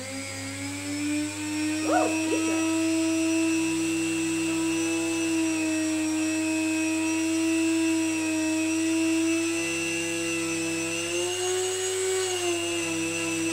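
A rotary tool bit grinds and buzzes against wood.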